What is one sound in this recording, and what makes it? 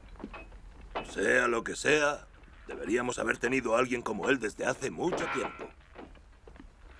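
A man speaks gruffly close by.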